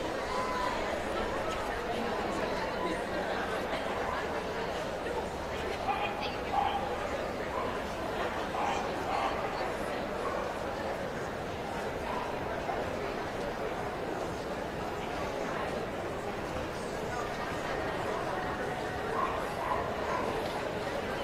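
A crowd murmurs softly in a large echoing hall.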